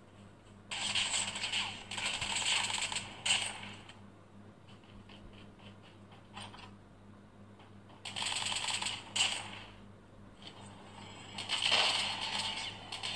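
A video game plays bursts of gunfire through a small phone speaker.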